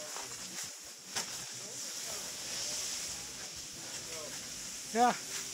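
Skis scrape and hiss slowly over packed snow.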